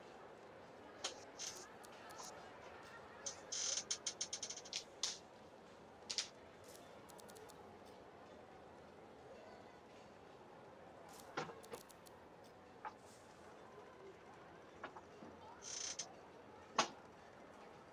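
Short, soft game menu blips and clicks sound again and again.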